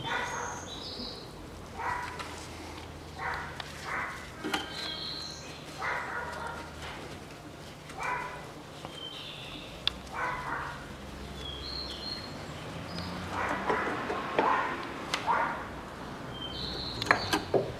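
Metal parts click and scrape now and then.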